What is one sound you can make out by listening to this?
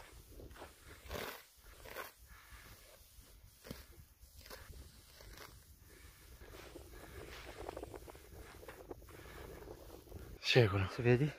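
Dry grass rustles and crackles as it is pulled up by hand.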